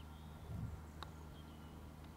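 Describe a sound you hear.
A putter taps a golf ball with a soft click.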